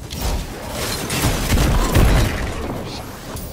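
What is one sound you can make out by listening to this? A gun fires loud, rapid blasts with a booming impact.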